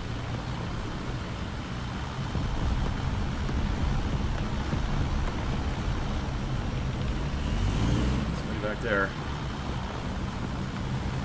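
A tank engine rumbles steadily as the tank drives.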